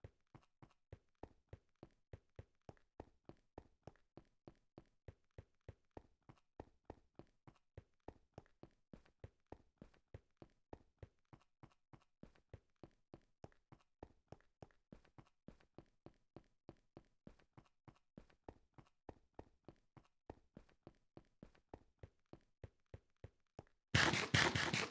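Footsteps crunch quickly and steadily on gravelly ground.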